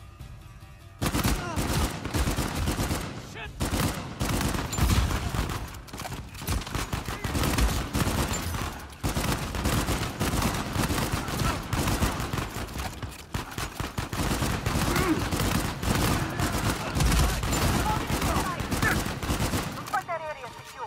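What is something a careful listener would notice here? Rifle shots crack rapidly, over and over.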